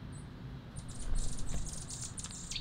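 A bird's wings flap as it flies in and lands.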